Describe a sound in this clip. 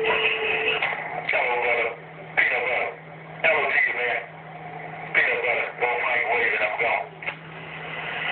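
A radio plays garbled, warbling signals in bursts.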